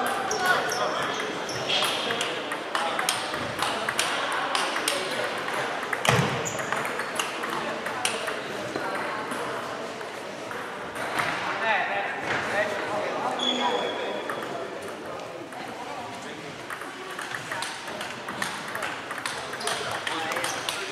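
Table tennis balls click sharply off paddles and a table in a large echoing hall.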